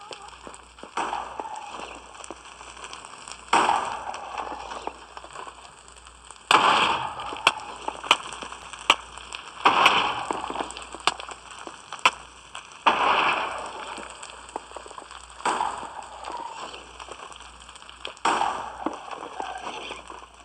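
Stone blocks crunch as they break.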